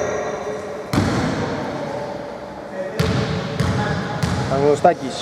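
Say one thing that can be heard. A basketball bounces with sharp thuds on a wooden floor in a large echoing hall.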